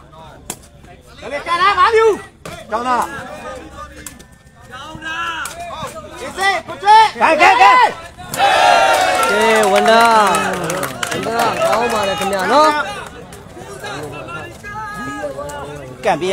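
A crowd shouts and cheers loudly.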